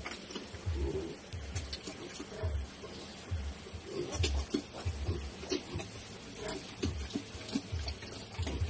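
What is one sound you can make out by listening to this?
Piglets squeal and snuffle while feeding.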